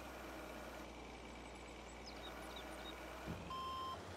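Soil pours from a loader bucket into a dump trailer.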